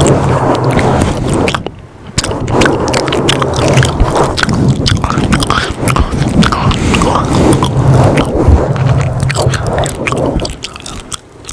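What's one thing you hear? Fingers rub and scratch on a foam microphone cover, loud and close.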